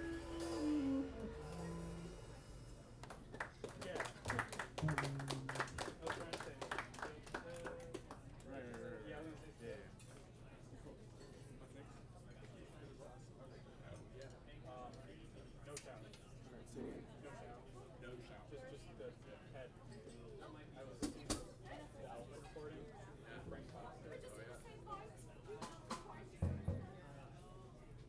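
A double bass is plucked in a walking line.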